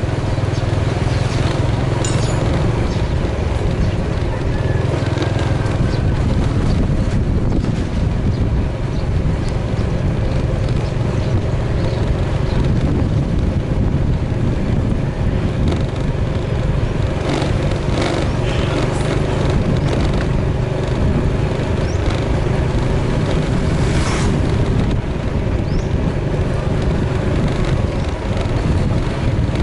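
A motorbike engine hums steadily at low revs.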